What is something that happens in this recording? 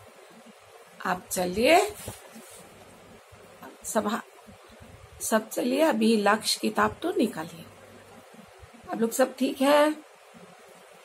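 A middle-aged woman speaks calmly and close up, in short phrases with pauses.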